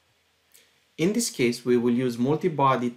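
A man speaks calmly into a microphone, as if presenting online.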